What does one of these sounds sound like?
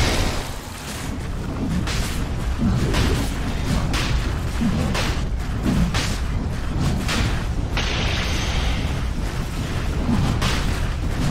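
Magic blasts crackle and burst again and again in a fight.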